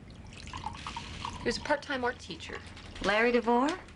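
Wine pours and gurgles from a bottle into a glass.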